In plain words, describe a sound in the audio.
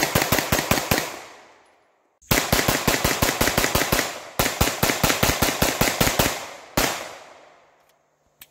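A handgun fires rapid bursts of shots outdoors, each burst echoing away.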